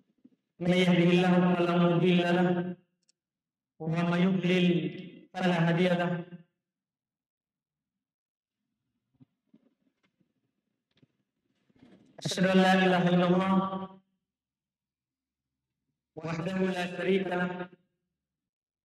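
A man speaks calmly into a close microphone, in bursts with long pauses.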